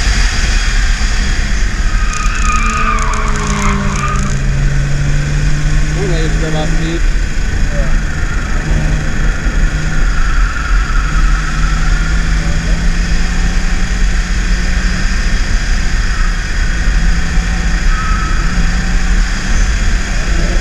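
A car engine drones steadily, rising and falling as the car speeds up and slows down.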